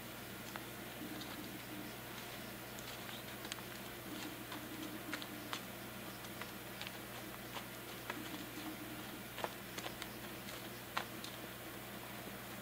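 Horse hooves thud softly on dirt.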